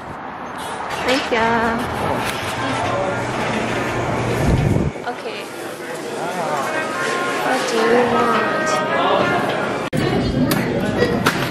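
People talk and murmur indoors in a busy room.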